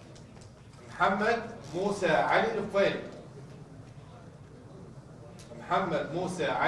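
A man reads out announcements clearly into a microphone.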